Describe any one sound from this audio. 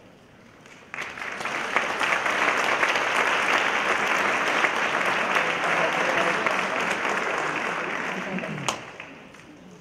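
An audience applauds loudly in a large hall, then the clapping dies away.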